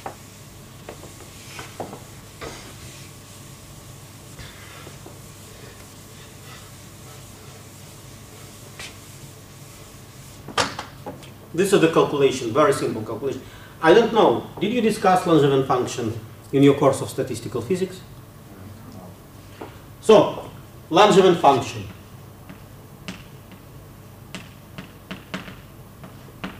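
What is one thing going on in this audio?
Chalk taps and scrapes on a blackboard.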